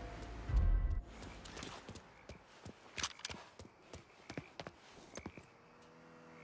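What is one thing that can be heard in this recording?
Footsteps run across pavement.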